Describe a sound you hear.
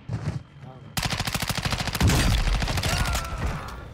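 An automatic rifle fires rapid bursts.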